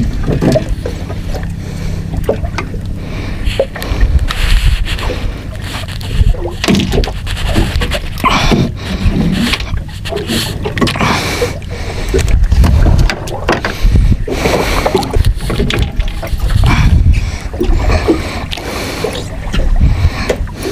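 Fishing gear knocks and clatters against a boat.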